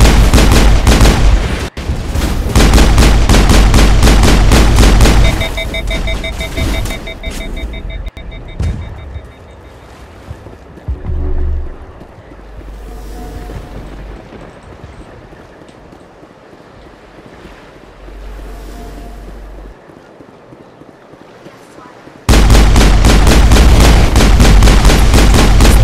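Rapid gunfire crackles loudly in bursts.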